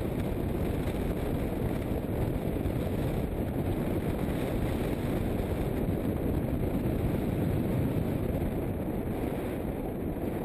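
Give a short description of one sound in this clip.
Wind rushes loudly and steadily past a microphone.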